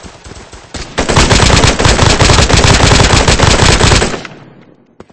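A rifle fires in a rapid, loud burst of shots.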